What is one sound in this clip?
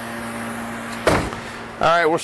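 A car door shuts with a thud.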